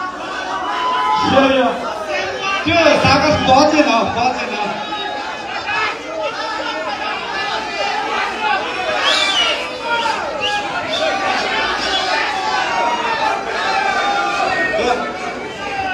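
A young man sings into a microphone through loudspeakers.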